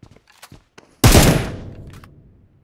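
Gunfire bursts out in rapid shots.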